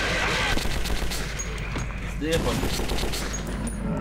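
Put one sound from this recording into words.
A fiery explosion booms and crackles.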